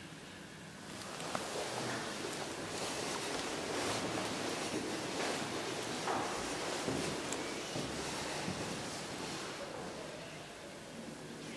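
Footsteps walk across a hard floor with an echo.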